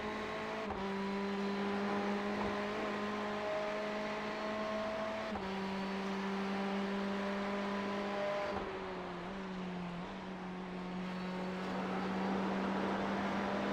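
A race car engine drones steadily at high revs, shifting pitch as the car changes gear.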